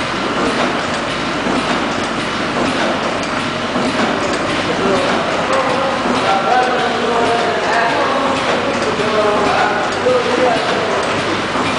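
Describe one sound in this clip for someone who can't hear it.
A packaging machine whirs and clatters steadily.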